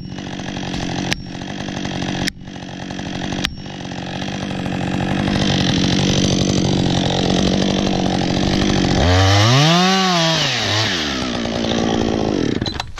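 A chainsaw engine runs steadily nearby.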